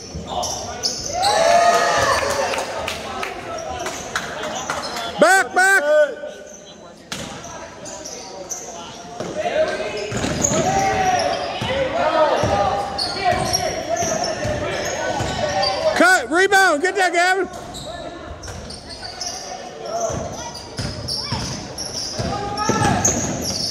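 Spectators nearby cheer and call out in a large echoing gym.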